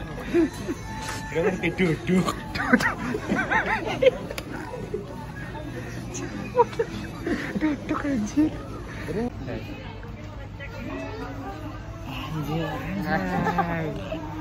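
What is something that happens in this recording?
Young men laugh close by.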